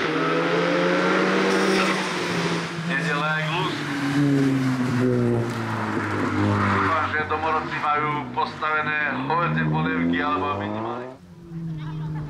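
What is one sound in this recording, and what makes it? A racing car engine roars loudly at high revs, rising and falling with quick gear changes.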